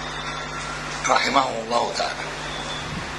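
An elderly man speaks briefly into a microphone.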